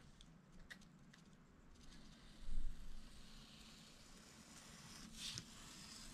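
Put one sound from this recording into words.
A craft knife scrapes faintly along paper.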